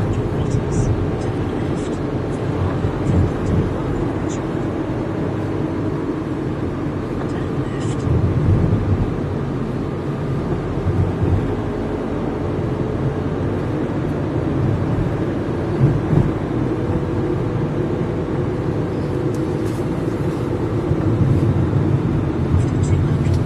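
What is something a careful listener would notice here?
Tyres roll on the road in steady traffic.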